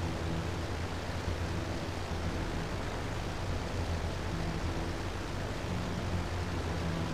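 A plane's propeller engines drone steadily.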